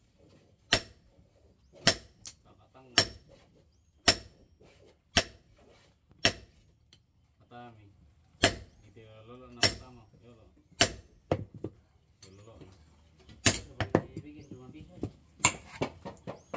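A heavy hammer rings out in sharp blows on metal, one every second or so.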